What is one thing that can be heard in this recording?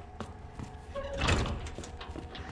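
A heavy door swings open with a thud.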